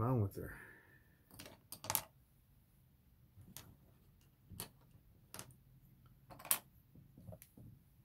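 Pencils clatter as they are set down and picked up.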